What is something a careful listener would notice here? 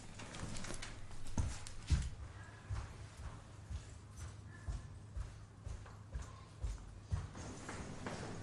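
Heels click on a hard floor as a woman walks quickly.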